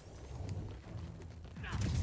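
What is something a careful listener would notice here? Blows thud in a brawl.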